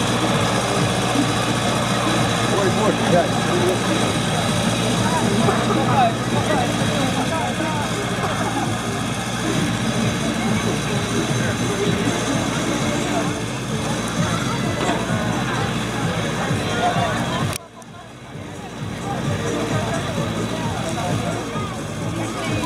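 A diesel tractor engine labours under load, pulling a plough.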